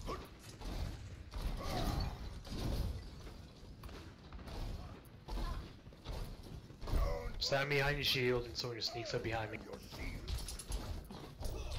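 A heavy gun fires in bursts.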